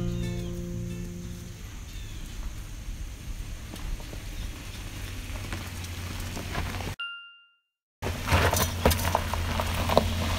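A van engine hums as the van drives slowly closer over gravel.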